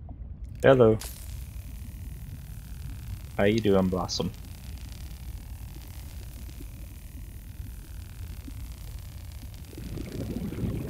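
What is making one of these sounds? A laser cutter hisses steadily.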